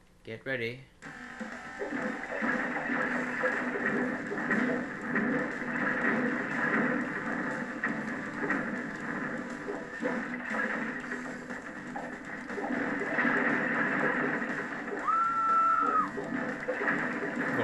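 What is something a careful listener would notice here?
Game crashes and explosions boom as buildings are smashed.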